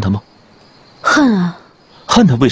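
A young woman answers briefly in a hushed, startled voice, close by.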